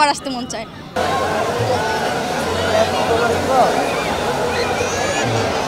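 A crowd of people shouts and chatters outdoors.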